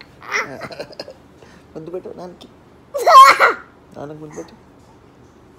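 A young child giggles close by.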